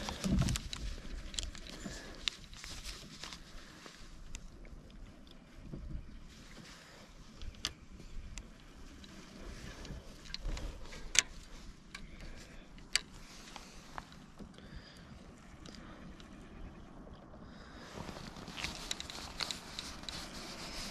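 A fishing reel clicks and whirs as line is handled.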